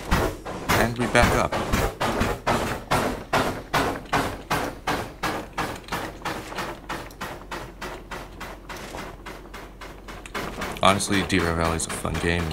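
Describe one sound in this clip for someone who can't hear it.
A steam locomotive chuffs in a steady rhythm, gradually slowing.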